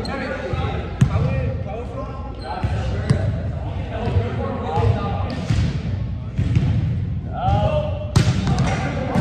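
A volleyball thumps off hands and arms in a large echoing hall.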